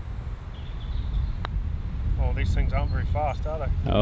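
A putter taps a golf ball.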